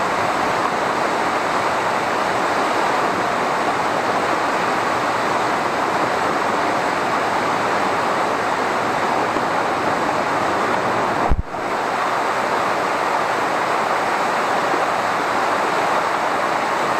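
Water rushes and splashes steadily over rocks close by.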